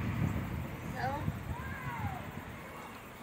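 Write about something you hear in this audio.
A young child calls out from a distance.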